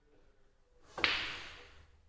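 A cue strikes a pool ball sharply.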